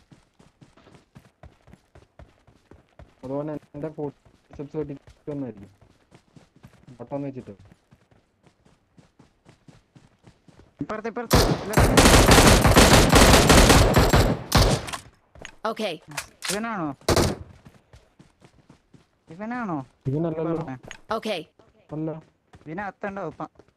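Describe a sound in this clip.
Footsteps run over grass and gravel.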